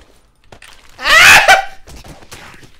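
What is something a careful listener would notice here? A young man gasps loudly in surprise.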